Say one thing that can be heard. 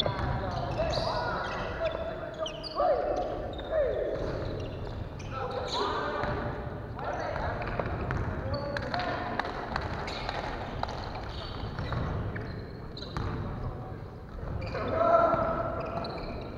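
A volleyball thuds as players hit it.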